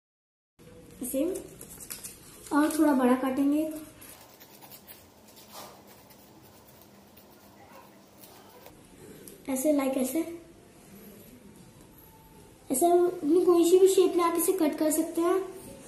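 A young girl speaks calmly close by.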